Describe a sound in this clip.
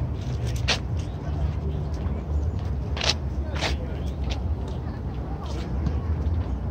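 Wind blows steadily outdoors, buffeting the microphone with a low rumble.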